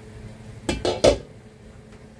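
A glass lid clinks against a countertop.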